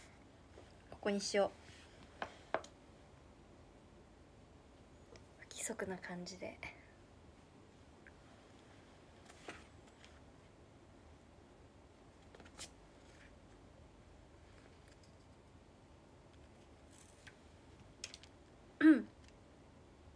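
A young woman speaks briefly and softly, close by.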